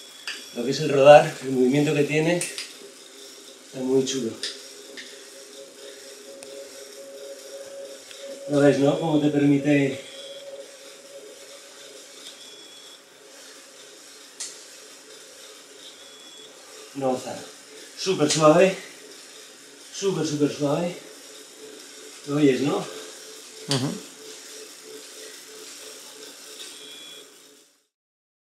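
A bicycle trainer whirs steadily under pedalling.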